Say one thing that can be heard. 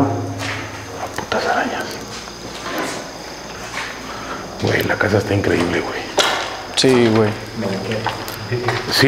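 Men talk quietly nearby in a small echoing room.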